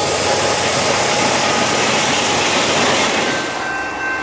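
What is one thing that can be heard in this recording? A freight train rumbles and clatters past close by, then moves away.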